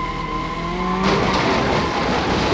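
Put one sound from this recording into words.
A car crashes into another car with a metallic crunch.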